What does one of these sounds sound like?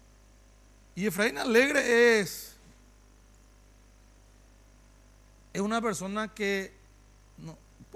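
A man speaks in short, animated bursts through a microphone.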